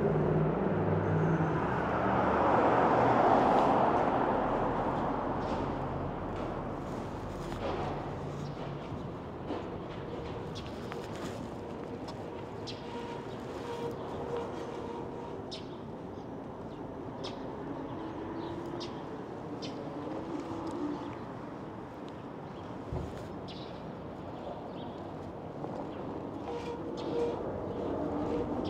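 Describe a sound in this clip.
Tyres of an e-bike roll over pavement.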